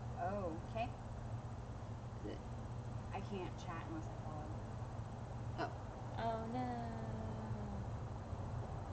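Young women talk casually nearby.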